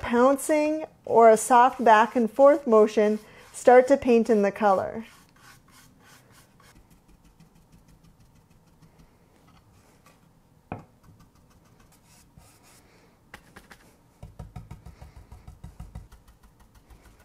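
A paintbrush brushes softly against wood.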